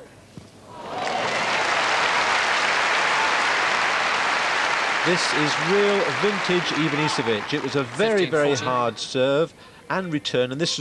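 A large crowd applauds and cheers.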